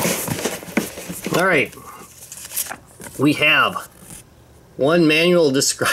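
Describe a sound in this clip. Paper crinkles as it is handled.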